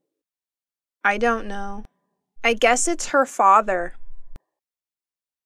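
A young woman answers in a hesitant, close voice.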